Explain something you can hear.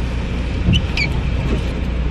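A seatbelt buckle clicks shut.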